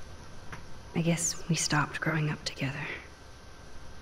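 A young woman speaks softly and wistfully.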